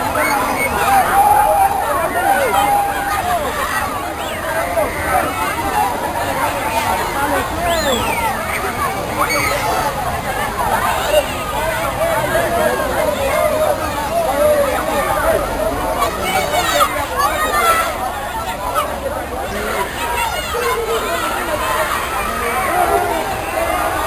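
Fountain jets spray and splash water steadily.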